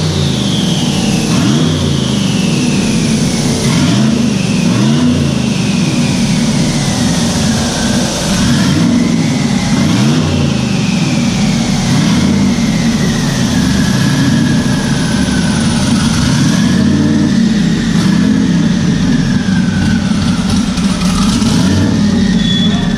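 Turbochargers whine shrilly, the pitch slowly sliding down and up.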